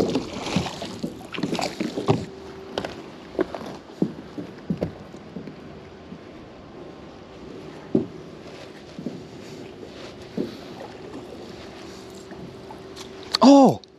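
A wet rope rustles and slaps as it is pulled in by hand.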